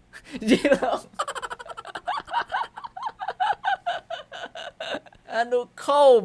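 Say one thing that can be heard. A young man laughs loudly in rapid bursts close to a microphone.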